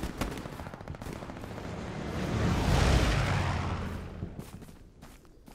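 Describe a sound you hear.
An aircraft engine roars overhead, rising and fading as the plane passes.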